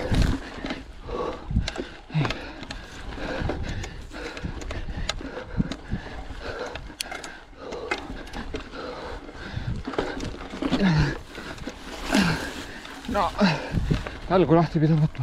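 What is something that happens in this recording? Bicycle tyres roll and crunch over a dry dirt trail.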